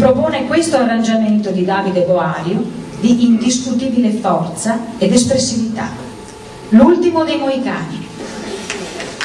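A woman announces through a loudspeaker in a large hall.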